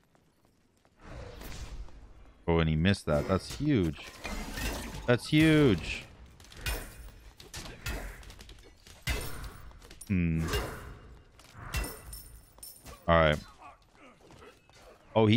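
Fighting sounds with whooshing spells and impacts crackle in a video game.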